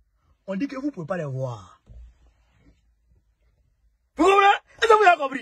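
A young man speaks close up with animation.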